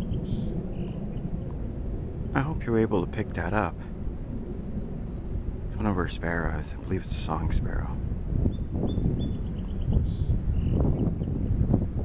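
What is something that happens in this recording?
A small bird chirps in short, high notes nearby.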